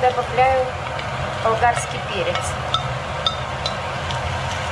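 A spoon scrapes chopped vegetables off a plate into a pan.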